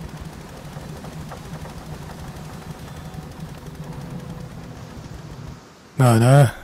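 A small boat motor hums steadily over the water.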